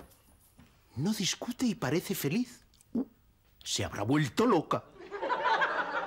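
A middle-aged man speaks in surprise, with short exclamations.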